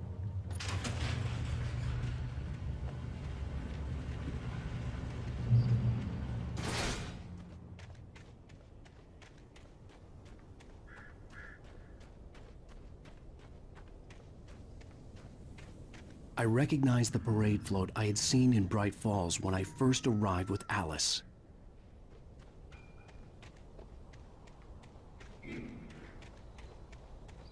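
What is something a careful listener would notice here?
Footsteps tread steadily on a dirt path.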